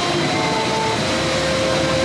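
A fountain jet splashes steadily onto rocks.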